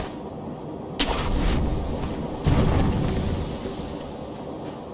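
A loud whoosh rushes past as something leaps through the air.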